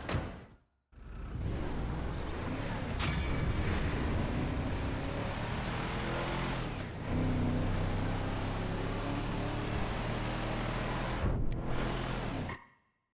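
A truck engine rumbles steadily as it drives along a road.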